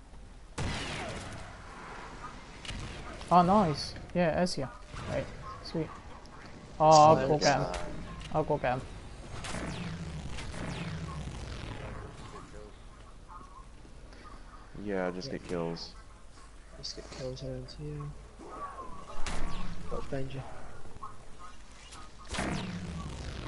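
An electric weapon crackles and zaps.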